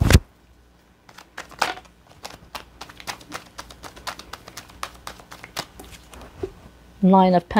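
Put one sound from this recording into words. Cards riffle and shuffle with quick clicks.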